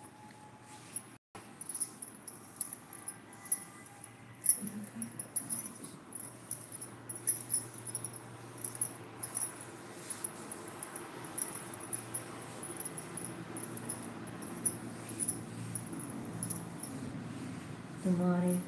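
Bangles clink softly on a moving wrist.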